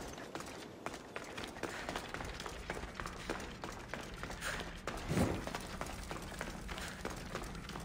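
Footsteps scuff on rock and dirt.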